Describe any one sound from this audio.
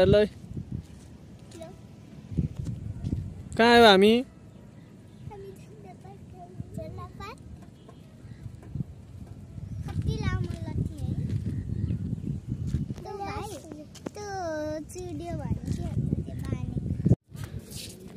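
Children talk close by outdoors.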